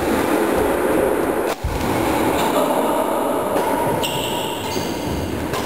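A badminton racket strikes a shuttlecock in an echoing sports hall.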